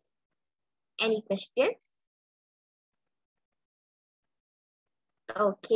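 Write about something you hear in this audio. A girl speaks briefly and calmly through an online call.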